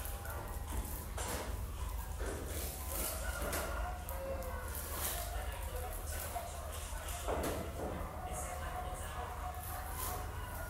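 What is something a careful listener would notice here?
Dry strands rustle and crackle as they are woven by hand.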